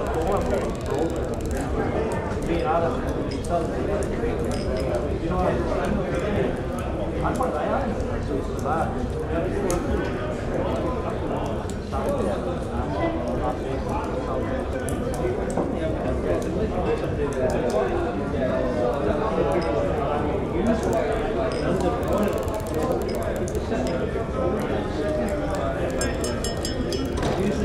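A crowd of men and women chatter and laugh all around.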